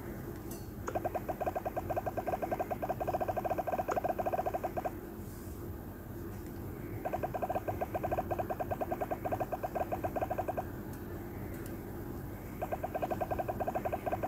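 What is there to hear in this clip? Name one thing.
Rapid electronic ticks patter as game balls bounce off blocks.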